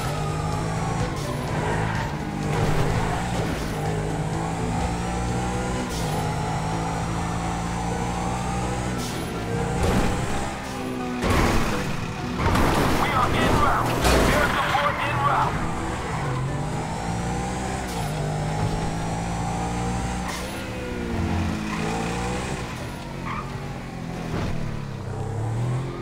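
A sports car engine revs and roars steadily as the car speeds along.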